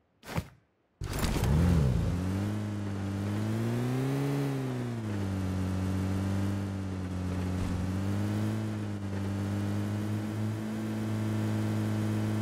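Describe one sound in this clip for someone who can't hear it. A car engine starts and hums steadily as the vehicle drives.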